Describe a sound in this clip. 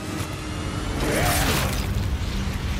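A blade slashes through the air with a sharp whoosh.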